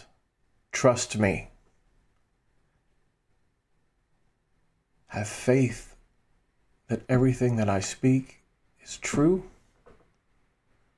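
A middle-aged man speaks calmly and warmly into a close microphone, with pauses.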